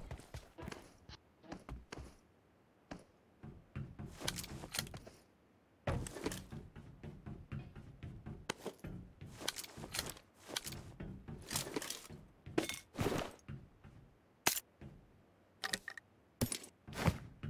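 Footsteps thud and clang on a metal roof.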